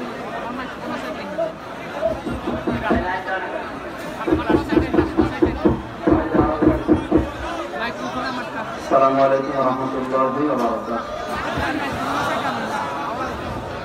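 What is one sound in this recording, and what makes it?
A man preaches with animation into a microphone, heard through loudspeakers.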